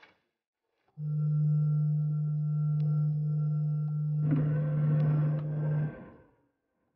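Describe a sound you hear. A medical scanner hums steadily.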